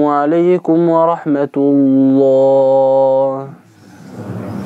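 A man chants a long, drawn-out melody through a microphone in an echoing room.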